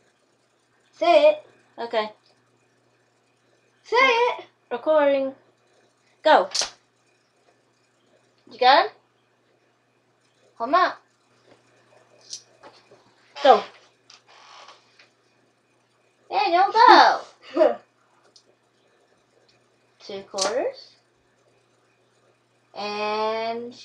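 A woman talks close by, in short bursts.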